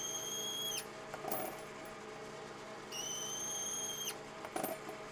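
A cutting tool whines shrilly on metal in two bursts.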